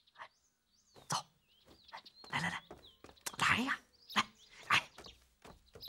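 A man calls out tauntingly.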